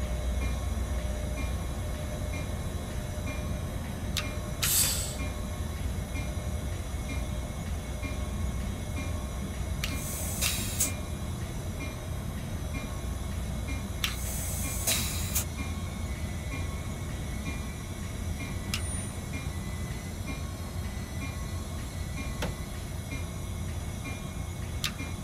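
A train engine rumbles low and steady.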